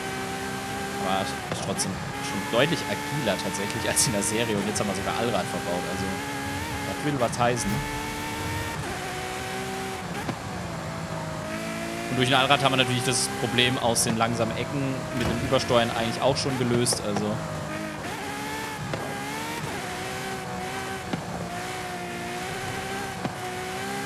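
A sports car engine roars at high revs, with the pitch dropping as the car slows.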